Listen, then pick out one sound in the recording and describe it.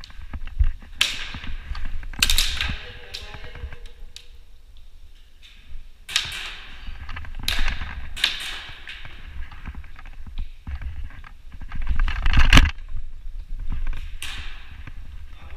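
An airsoft gun fires in short, sharp bursts close by.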